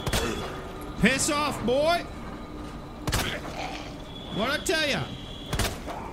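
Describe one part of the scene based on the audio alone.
A zombie groans and moans.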